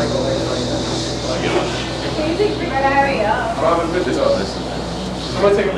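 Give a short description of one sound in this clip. An electric guitar plays a melody.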